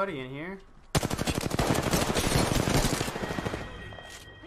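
Rapid gunfire rattles in a fast burst.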